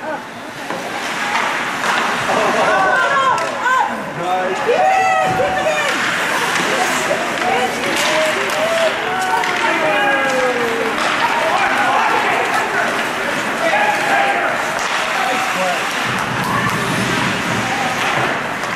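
Hockey skates carve and scrape on ice.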